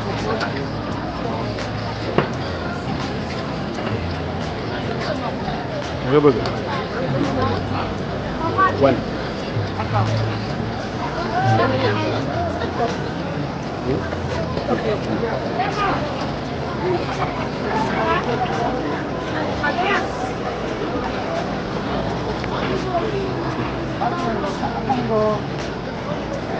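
A crowd murmurs and chatters throughout.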